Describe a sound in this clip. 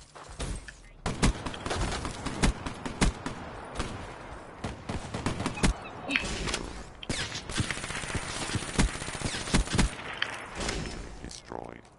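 Rapid gunfire cracks in bursts close by.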